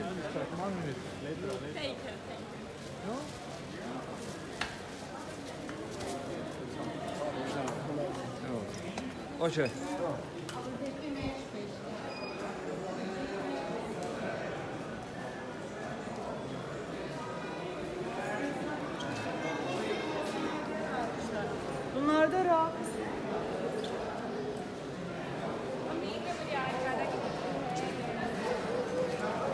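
A crowd of men and women chatters all around, echoing under a high roof.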